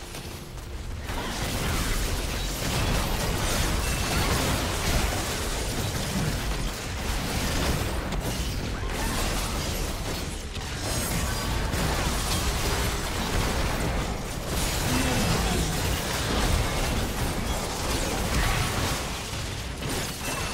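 Video game spell blasts and clashing weapon effects crackle and boom during a battle.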